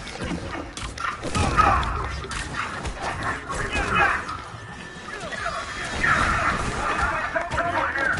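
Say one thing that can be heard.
Energy weapons blast and zap in a fight.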